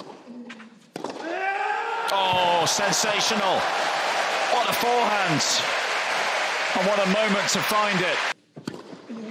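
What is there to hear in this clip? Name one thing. A large crowd cheers and applauds loudly.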